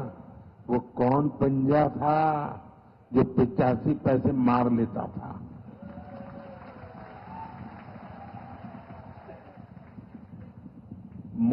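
An older man speaks forcefully into a microphone, heard through loudspeakers.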